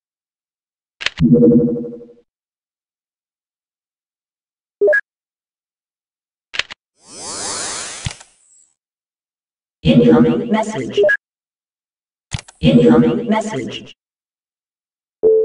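Electronic interface tones chime and whoosh as menu panels open and close.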